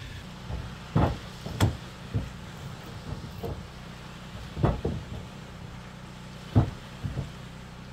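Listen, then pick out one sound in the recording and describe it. A hammer strikes a wooden post.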